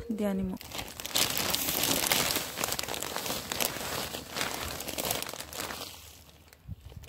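Compost pours out of a bag onto gravel with a soft, steady rush.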